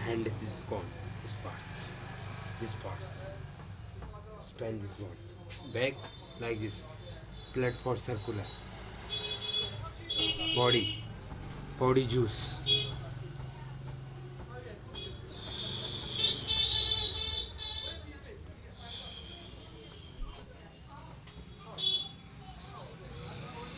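Hands rub and knead bare skin with soft slapping sounds.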